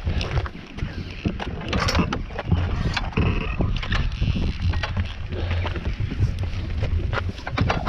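A wooden gate's latch clanks and its hinges creak as it swings open.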